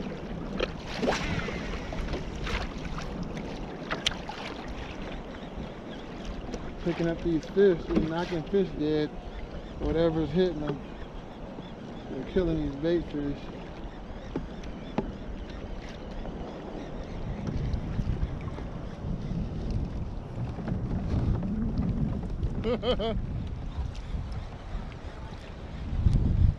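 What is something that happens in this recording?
Wind blows over open water.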